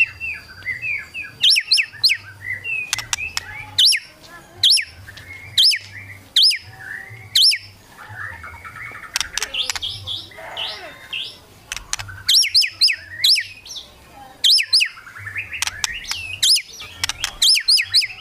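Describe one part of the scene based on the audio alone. A songbird sings loud, varied whistles and chirps close by.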